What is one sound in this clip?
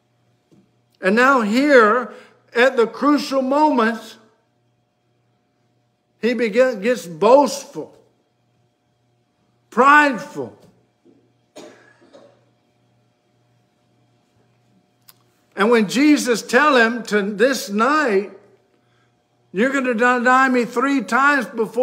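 An older man speaks with animation close to a microphone, pausing between phrases.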